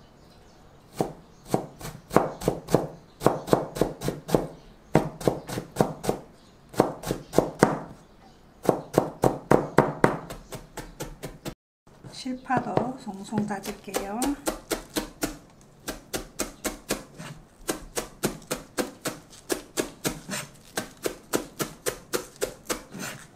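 A knife chops quickly and rhythmically on a cutting board.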